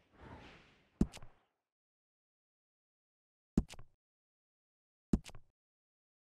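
Computer keys and a mouse click sharply.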